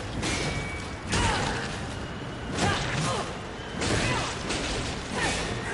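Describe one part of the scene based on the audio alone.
Blades swoosh and strike hard in a fast fight.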